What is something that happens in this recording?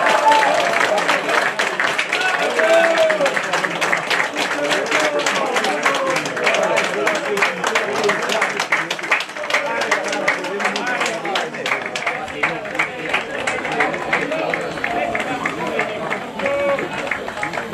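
A crowd of fans chants and sings loudly outdoors.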